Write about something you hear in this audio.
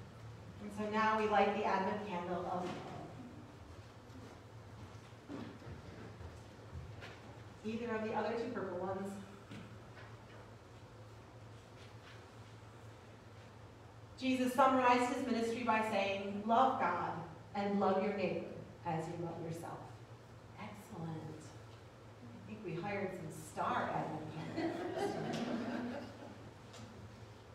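A young man speaks calmly through a microphone in an echoing hall, pausing between phrases.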